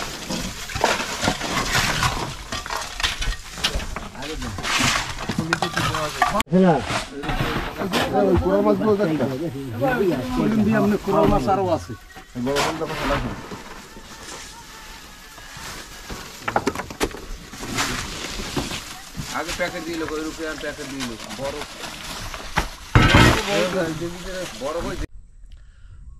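Several men talk nearby in lively voices.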